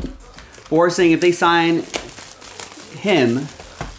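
Plastic wrap crinkles in hands.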